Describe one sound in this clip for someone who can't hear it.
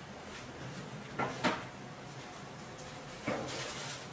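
A cutting board is set down on a wooden table with a clunk.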